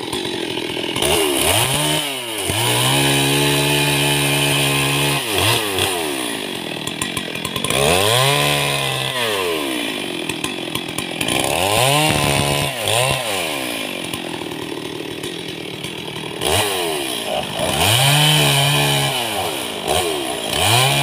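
A small gas chainsaw revs up and down.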